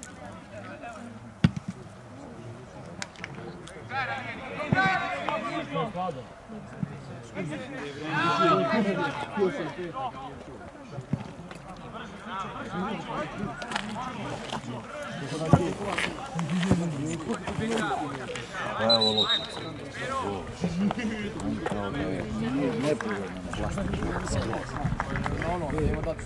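Young men shout to one another outdoors across an open field.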